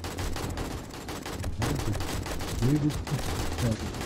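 A gun fires in loud bursts.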